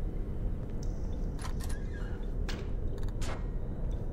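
A door swings open with a creak.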